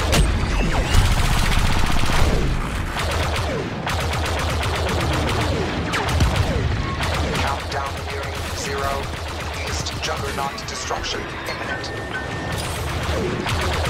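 Explosions boom as ships are hit.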